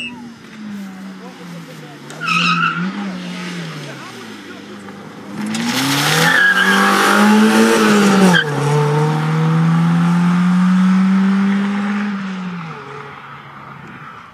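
A rally car engine revs hard and roars past close by.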